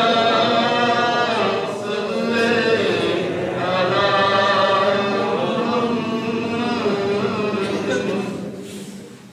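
A man sings or chants in a long, melodic voice through a microphone and loudspeakers, in a large echoing hall.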